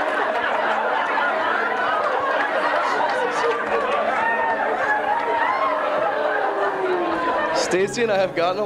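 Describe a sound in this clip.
A crowd of people laughs loudly in a room.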